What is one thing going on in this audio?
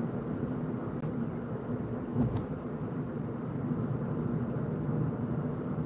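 Tyres roll steadily on smooth road.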